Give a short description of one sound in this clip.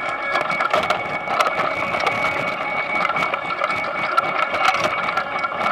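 Potatoes knock and tumble against each other.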